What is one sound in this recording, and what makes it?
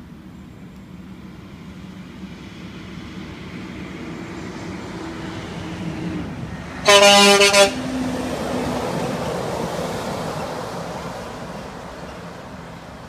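A heavy truck approaches and roars past close by.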